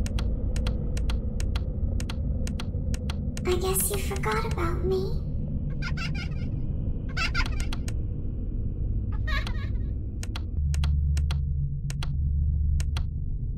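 A flashlight clicks on and off repeatedly.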